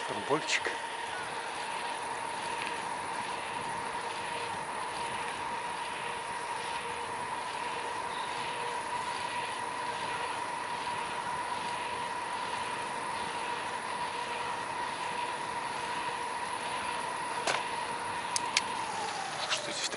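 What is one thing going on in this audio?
Bicycle tyres hum steadily along a smooth path.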